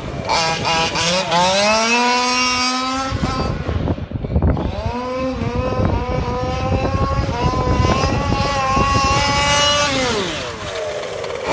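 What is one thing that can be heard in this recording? A small electric toy car motor whines loudly, rising in pitch as it speeds up.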